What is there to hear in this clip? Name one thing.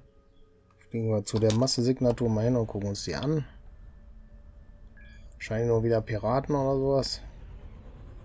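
A middle-aged man talks with animation into a close microphone.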